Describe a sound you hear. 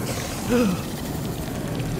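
A pig grunts.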